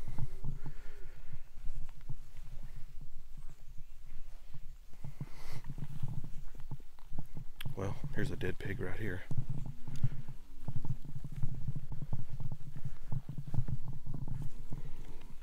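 Footsteps crunch on gravel and swish through dry grass.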